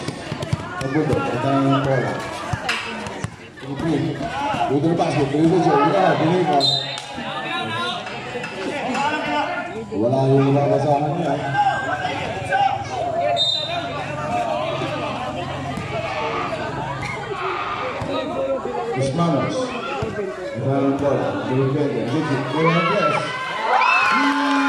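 A crowd of spectators shouts and cheers nearby, outdoors.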